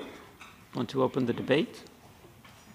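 A man speaks calmly into a microphone in a large, echoing room.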